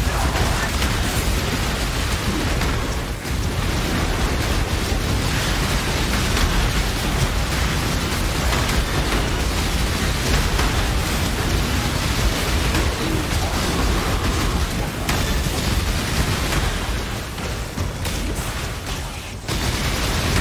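Spell blasts crackle and boom in rapid succession.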